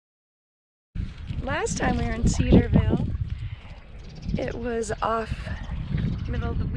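A woman talks with animation close by, outdoors in wind.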